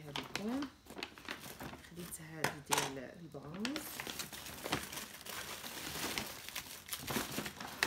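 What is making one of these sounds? A paper bag rustles and crinkles.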